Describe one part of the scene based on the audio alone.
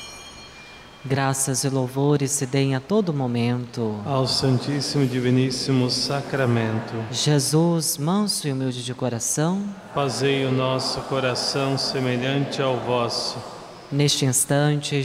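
A man chants in song through a microphone, echoing in a large hall.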